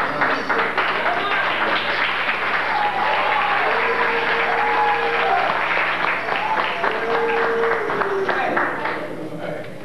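A crowd sings together in a large echoing hall.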